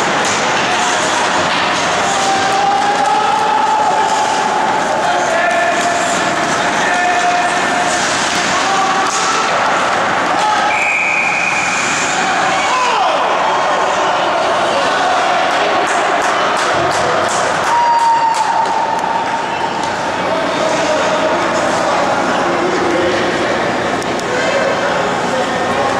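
Spectators talk and call out around the rink.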